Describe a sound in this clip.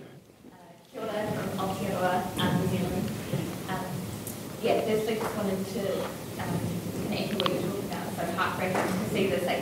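A woman speaks steadily through a microphone and loudspeakers in a large hall.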